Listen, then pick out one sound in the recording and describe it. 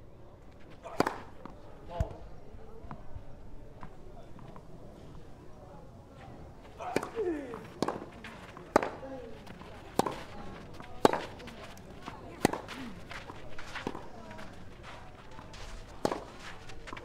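A tennis racket strikes a ball with sharp pops, back and forth.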